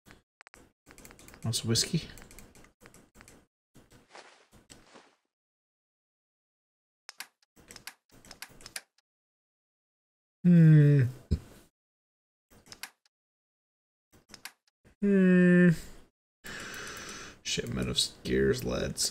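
Short electronic clicks tick as a game menu is scrolled through.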